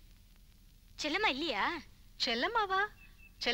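A young woman speaks nearby in reply.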